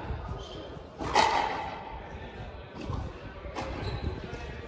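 A racket strikes a ball with a sharp crack.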